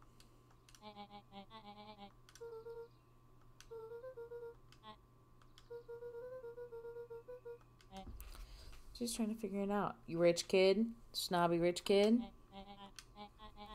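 Rapid electronic blips chatter in short bursts, like a cartoon voice.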